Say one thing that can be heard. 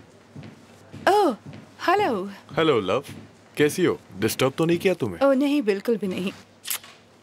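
A woman speaks brightly nearby.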